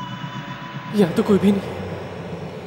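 A young man speaks a few short, tense words close by.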